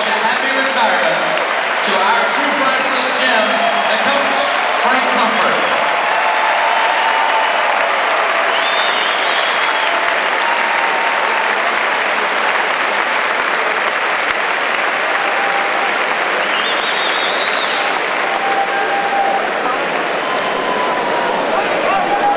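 A large crowd applauds steadily in a big echoing arena.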